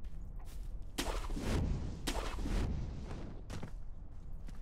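A young man talks into a microphone with animation.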